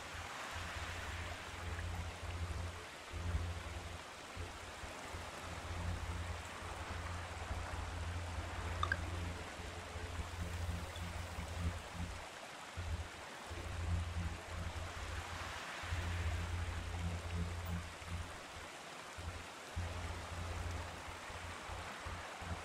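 A man talks calmly and steadily into a close microphone.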